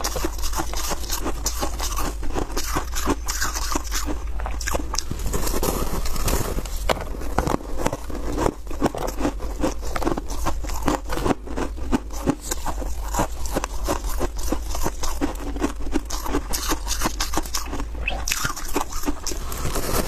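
Ice crackles and squeaks as a young woman's gloved hands squeeze it.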